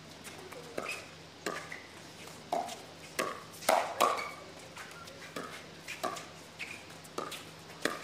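Paddles strike a plastic ball in a rapid back-and-forth rally.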